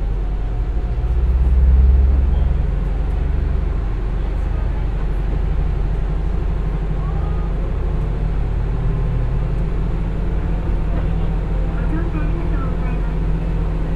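A diesel engine revs up loudly as a train pulls away.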